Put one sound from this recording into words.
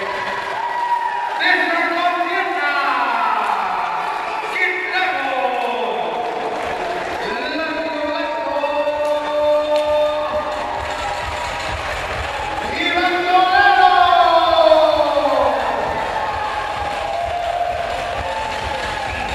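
A crowd of spectators shouts and cheers in an echoing hall.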